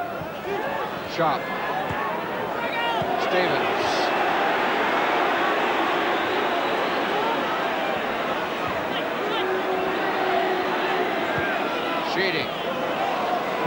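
A large football crowd roars and chants in an open-air stadium.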